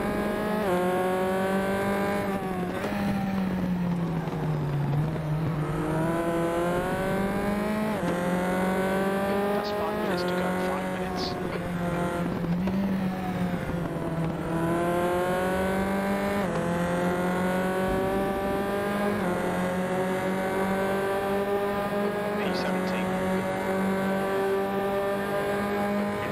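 A racing car engine revs high and climbs through the gears with sharp shifts.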